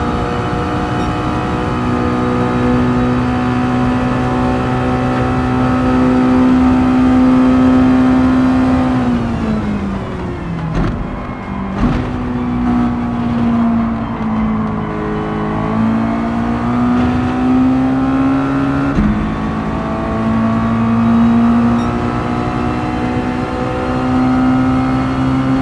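A racing car engine roars steadily at high speed, drops in pitch as the car slows for a turn, then rises again as it accelerates.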